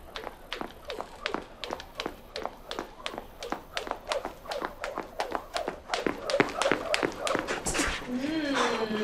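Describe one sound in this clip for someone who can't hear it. Shoes tap rapidly on a wooden floor.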